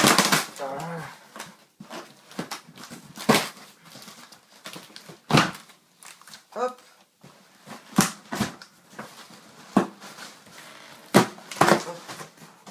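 Cardboard flaps rustle and thump as a box is opened.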